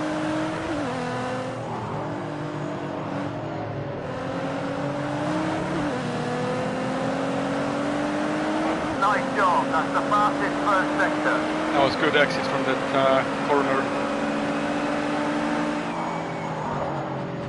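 A racing car engine roars steadily, its pitch dropping with each gear change and then slowly climbing.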